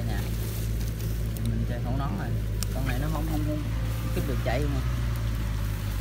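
Leaves and twigs rustle.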